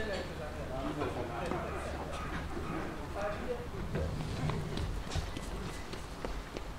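A small crowd of adults chatters close by.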